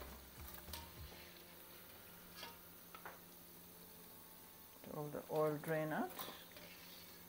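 A metal slotted spoon clinks against metal pans.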